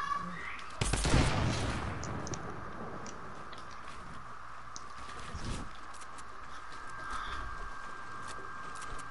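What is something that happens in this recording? Wooden walls clatter and thud into place in quick bursts.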